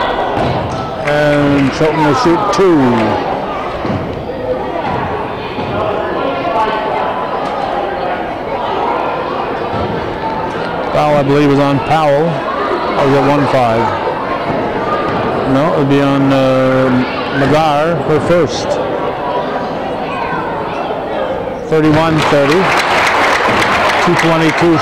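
Men and women in a crowd shout and cheer loudly.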